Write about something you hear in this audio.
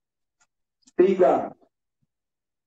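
A man speaks a short phrase close by.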